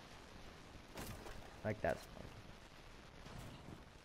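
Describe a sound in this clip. A wooden barricade is struck and breaks apart.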